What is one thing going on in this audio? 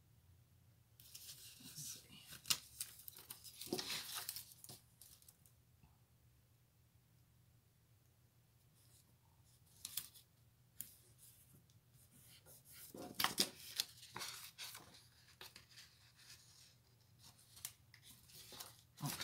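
Paper pages rustle and crinkle as they are handled.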